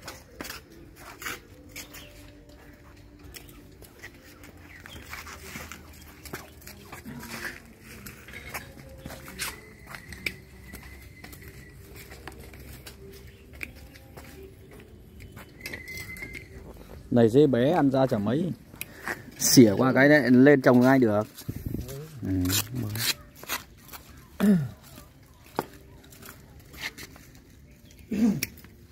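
A small tool scrapes and digs into damp soil.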